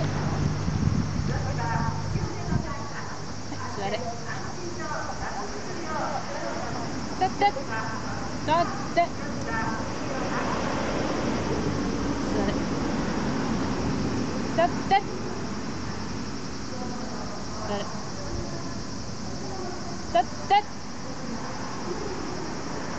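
A woman talks calmly nearby, outdoors.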